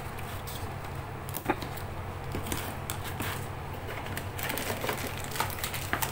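Cardboard flaps rustle and crinkle as a box is handled up close.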